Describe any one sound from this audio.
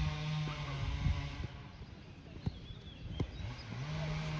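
A football thuds when kicked.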